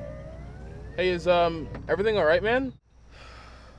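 A young man speaks from inside a car.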